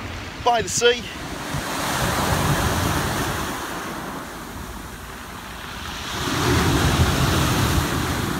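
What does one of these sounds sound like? Waves crash and wash over a pebble beach.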